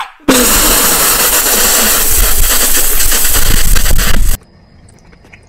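A young man slurps and gulps loudly, close by.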